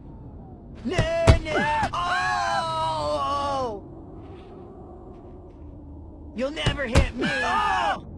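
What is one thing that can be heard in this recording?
A football is kicked hard with a dull thud.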